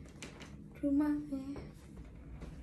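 A young woman speaks briefly close by.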